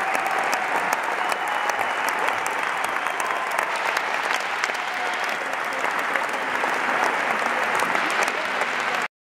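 A large crowd claps and cheers in a big echoing arena.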